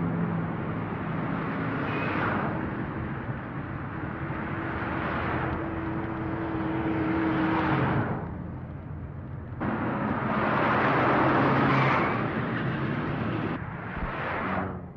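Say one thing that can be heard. A car drives past on a road with its engine humming.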